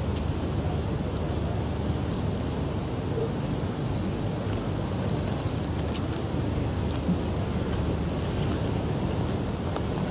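A heavy wooden carriage rumbles slowly over pavement.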